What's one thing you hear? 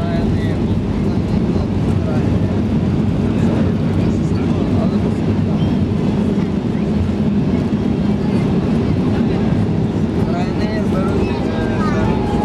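Aircraft wheels rumble on a runway.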